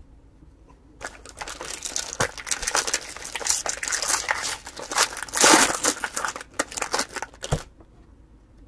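Foil wrappers crinkle and tear as packs are opened by hand.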